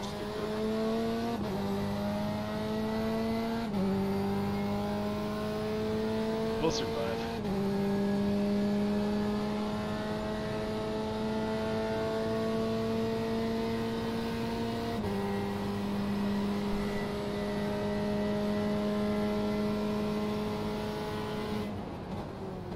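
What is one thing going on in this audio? A racing car engine drones steadily, climbing in pitch and dropping with each gear change.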